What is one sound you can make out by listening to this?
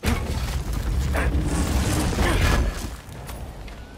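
Loose objects rattle and clatter inside a chest.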